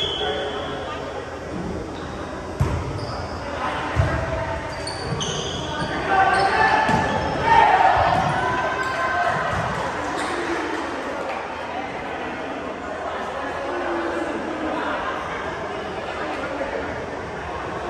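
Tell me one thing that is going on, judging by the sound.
Young men shout and call out during play in a large echoing gym.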